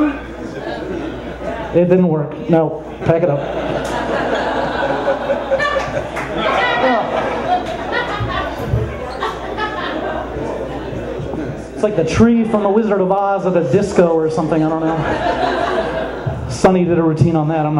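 A man sings loudly into a microphone, heard through loudspeakers in a room.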